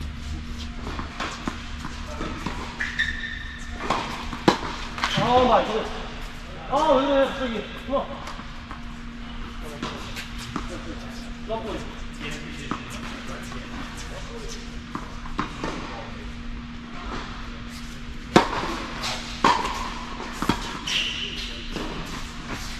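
Rackets strike a tennis ball back and forth, with sharp pops echoing in a large hall.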